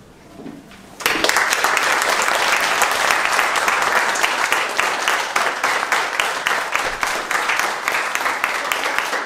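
A crowd of young people claps and cheers loudly.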